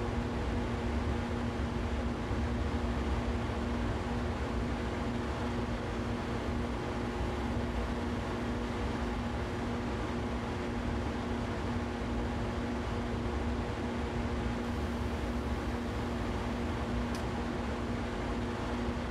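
Train wheels rumble and clatter over the track.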